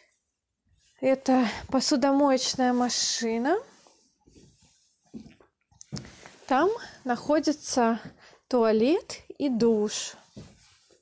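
A woman speaks close by, calmly explaining.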